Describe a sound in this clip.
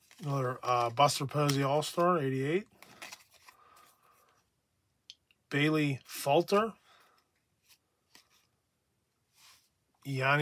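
Cards rustle and slide against each other as they are flipped through by hand.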